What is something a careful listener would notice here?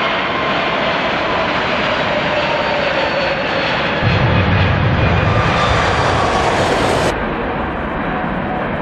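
A jet airliner's engines roar loudly as it speeds down a runway and takes off.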